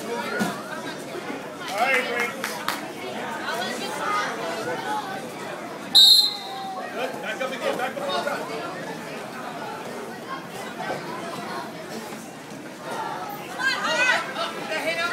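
A crowd of adults and children talks and shouts encouragement in a large echoing hall.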